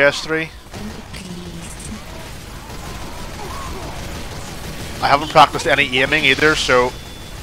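Guns fire rapidly in a video game.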